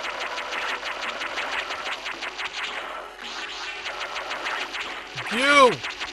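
Rapid blaster shots and explosions crackle in a video game.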